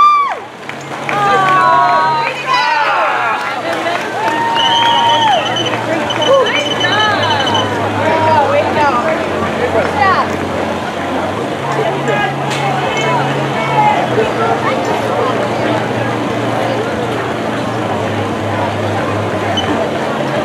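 Men and women chatter in a crowd nearby.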